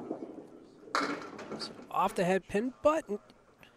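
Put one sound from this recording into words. A small bowling ball crashes into candlepins and knocks them clattering down.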